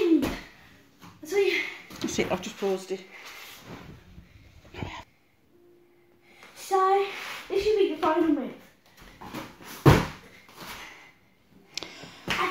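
A young girl talks and sings nearby with animation.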